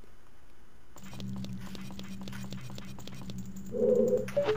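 A low, eerie musical drone hums steadily.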